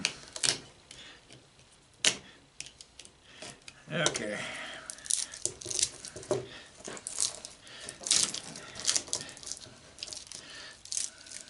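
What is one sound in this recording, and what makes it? A knife scrapes and cuts through wire insulation.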